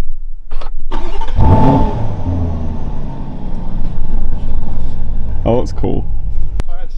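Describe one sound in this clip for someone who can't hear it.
A car engine starts with a roar and then idles.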